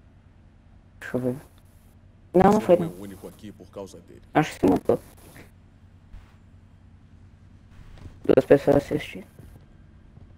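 A man speaks calmly in a deep voice, in short bursts.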